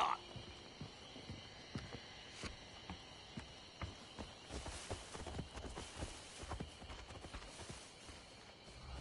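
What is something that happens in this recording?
Footsteps crunch on wood and gravel.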